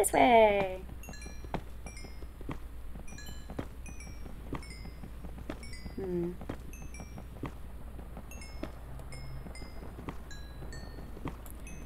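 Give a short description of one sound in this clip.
Small chimes ring as experience orbs are picked up.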